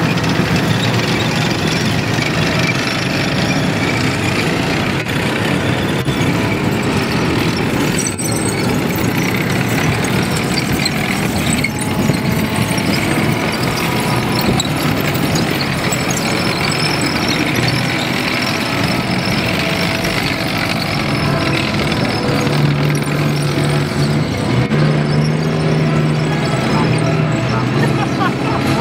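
Heavy tracked vehicle engines rumble and roar close by.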